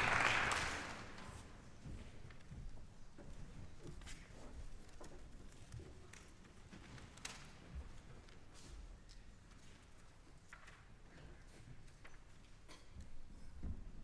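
Musicians shuffle and softly clatter their instruments.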